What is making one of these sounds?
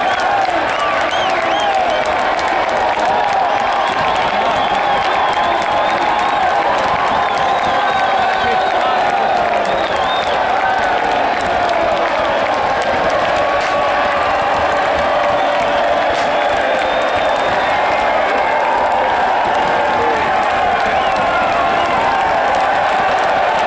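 A large crowd chants and cheers loudly outdoors.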